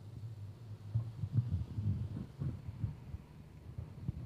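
A microphone knocks and rumbles as it is handled.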